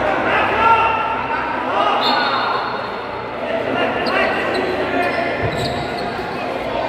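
A crowd of young men chatter and shout in a large echoing hall.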